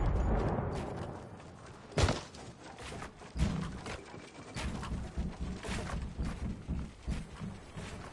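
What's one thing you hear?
Building pieces clack into place in rapid knocks.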